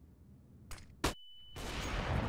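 A stun grenade bangs sharply.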